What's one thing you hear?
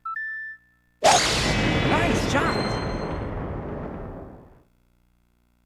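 A golf club strikes a ball with a loud whooshing rush that slowly fades.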